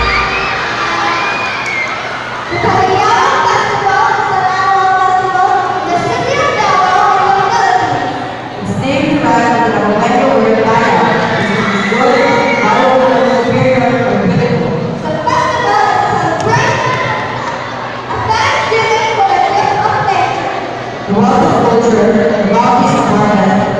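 Pop music plays loudly over loudspeakers in a large hall.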